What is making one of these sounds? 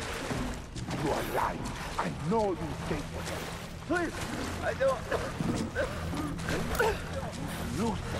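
A man coughs.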